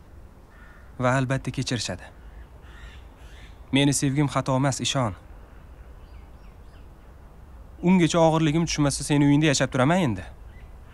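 A young man speaks calmly and close by, in short phrases.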